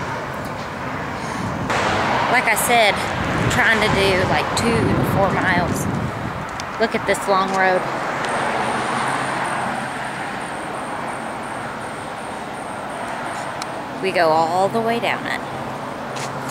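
A young woman talks close by in a lively way.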